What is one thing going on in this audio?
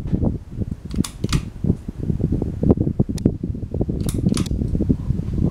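A pull chain clicks sharply.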